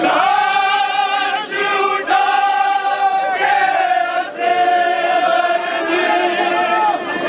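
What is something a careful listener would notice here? A man sings a slow, mournful chant loudly.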